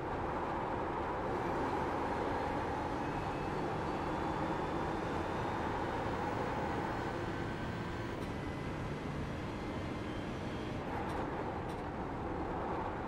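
A racing car engine roars steadily as it accelerates and shifts gears.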